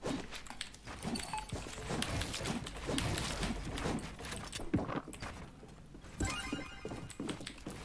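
Building pieces snap into place with quick, hollow clacks.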